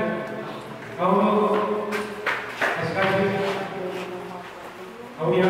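A man speaks steadily into a microphone, heard through a loudspeaker in an echoing hall.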